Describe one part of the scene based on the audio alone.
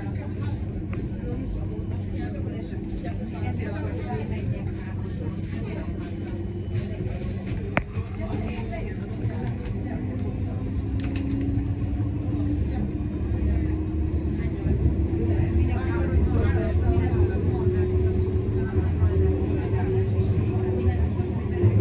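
A tram rumbles along its tracks.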